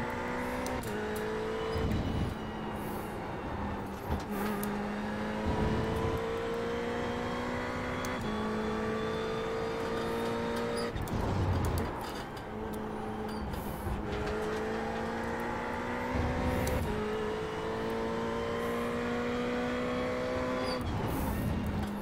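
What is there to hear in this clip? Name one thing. A racing car's gearbox shifts with sharp clunks.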